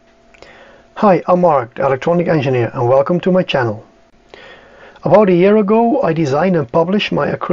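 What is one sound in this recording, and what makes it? A middle-aged man talks calmly and close to the microphone.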